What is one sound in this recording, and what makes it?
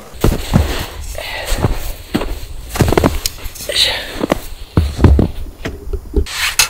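Boots crunch through snow.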